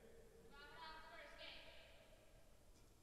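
Sports shoes squeak on an indoor court.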